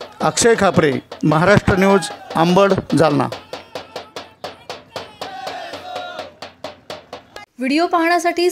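A group of men chant loudly outdoors.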